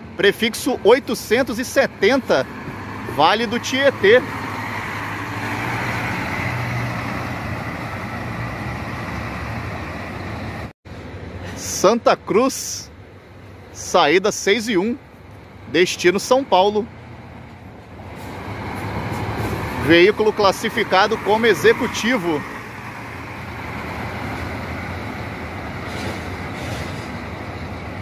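A bus engine rumbles nearby as buses pull in and drive off.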